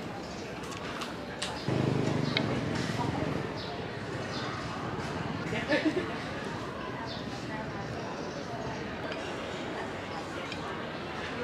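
Chopsticks click and scrape against a glass food container.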